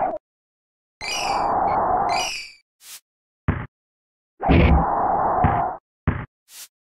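A crowd roars and cheers in bursts.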